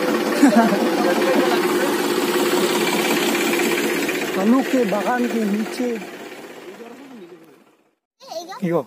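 A tractor engine runs with a steady, close rumbling hum.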